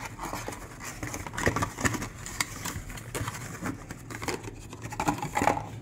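Cardboard rustles and flaps as a box is opened.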